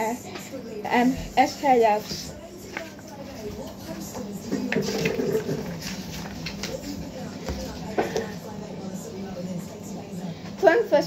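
A boy speaks close by.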